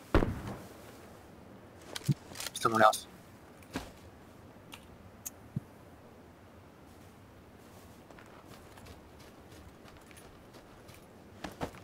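A body rustles softly through dry grass.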